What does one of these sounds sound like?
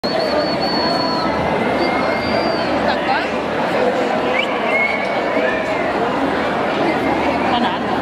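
A large crowd chatters and calls out outdoors.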